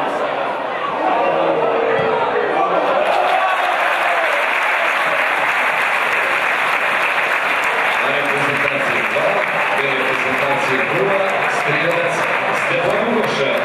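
A crowd cheers loudly in an open stadium.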